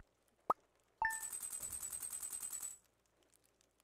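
A fast electronic chiming rattles steadily, then stops.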